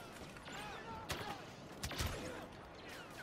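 Gunshots fire in quick bursts with sharp bangs.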